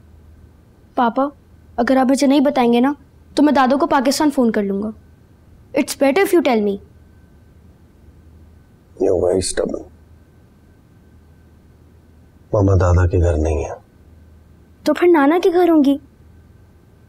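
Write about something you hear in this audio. A boy speaks with animation, close by.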